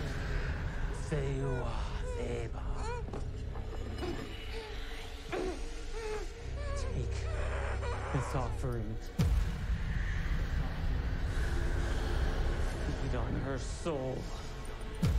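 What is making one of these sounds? A young woman whimpers and moans, muffled, close by.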